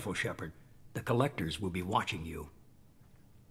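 A man speaks calmly, close up.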